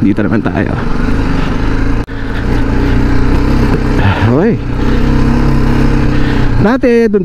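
A single-cylinder adventure motorcycle engine hums as it rides along a dirt track.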